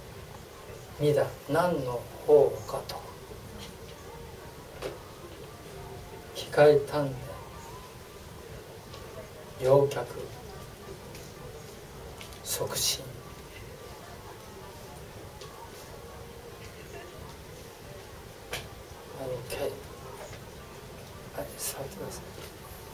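An older man speaks slowly in short bursts through a microphone, with long pauses.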